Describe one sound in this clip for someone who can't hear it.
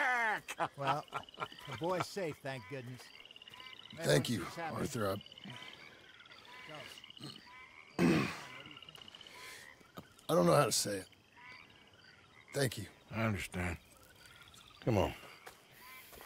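A man speaks softly and gratefully, close by.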